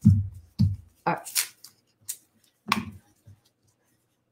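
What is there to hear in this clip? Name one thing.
Gloved hands rustle a paper coin roll.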